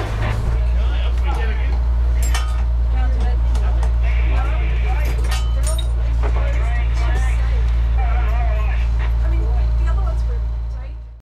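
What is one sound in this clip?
A man talks casually over the engine noise.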